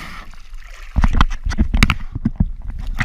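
Water splashes at the surface.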